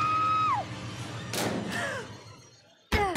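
A young woman screams.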